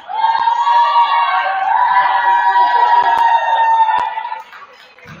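A group of young players cheer and shout in an echoing gym.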